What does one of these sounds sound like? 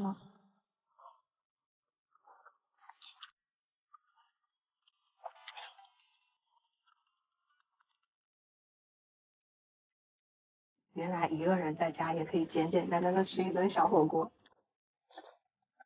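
A young woman slurps and chews noodles.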